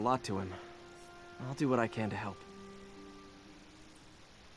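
Electronic menu chimes ring out in short bright tones.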